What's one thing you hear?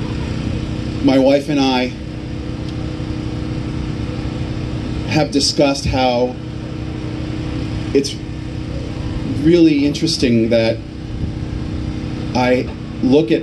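A man speaks slowly through a loudspeaker outdoors, with pauses between phrases.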